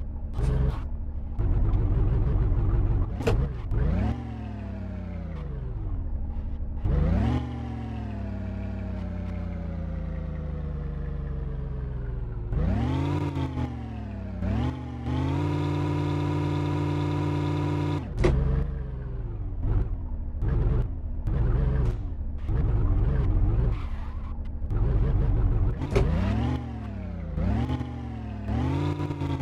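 An off-road engine revs up and down, straining and easing off in bursts.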